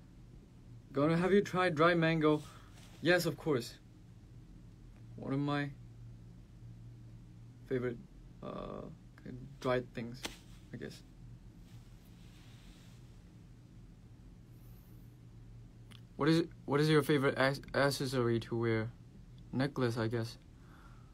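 A young man speaks calmly and casually, close to a microphone, in short bursts with pauses.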